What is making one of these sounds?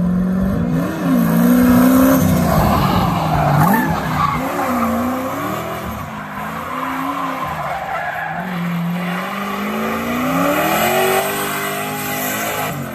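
A turbocharged V8 pickup truck engine revs hard, rising and falling.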